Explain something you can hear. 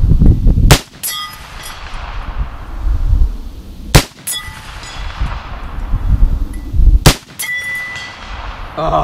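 A steel target rings with a metallic clang after each shot.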